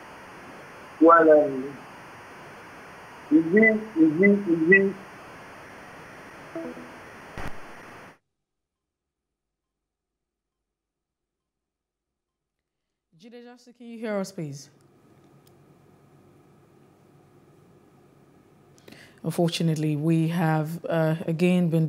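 A woman speaks calmly into a microphone, reading out the news.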